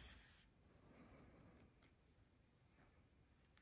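Yarn rustles softly as it is pulled through knitted stitches.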